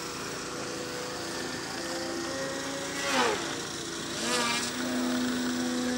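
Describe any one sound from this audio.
A model airplane engine buzzes overhead, rising and falling in pitch as it swoops.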